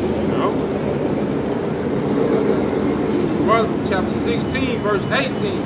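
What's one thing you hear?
Several men murmur and talk nearby.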